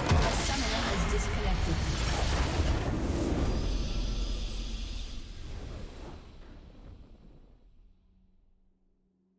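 A triumphant victory fanfare swells and fades out.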